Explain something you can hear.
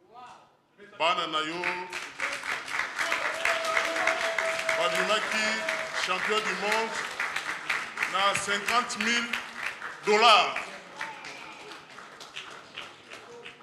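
A crowd cheers and claps in an echoing hall.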